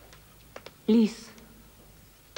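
A woman speaks a few quiet words close by.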